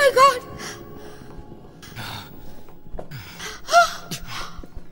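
A young woman screams in terror nearby.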